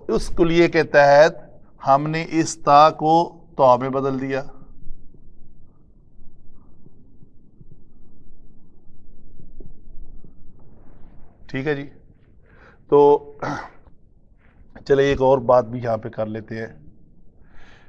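A middle-aged man speaks calmly and clearly, as if teaching, nearby.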